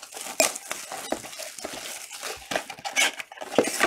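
Plastic wrap crinkles and rustles as hands tear it from a box.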